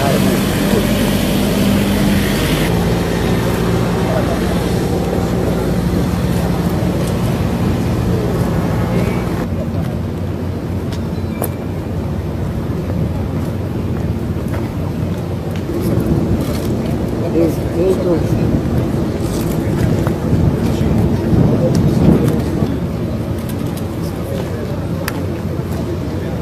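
A large jet plane's engines roar steadily as it taxis slowly nearby.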